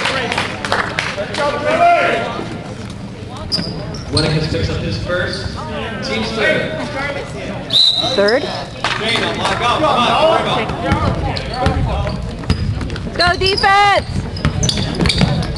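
Spectators talk and cheer in a large echoing hall.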